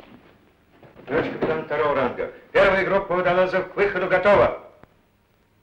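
A man speaks firmly in a clear voice.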